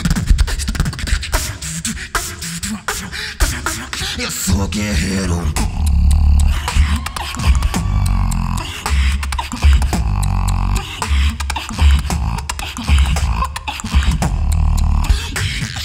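A young man beatboxes through a microphone and loudspeakers in a large hall, with heavy bass kicks and sharp snares.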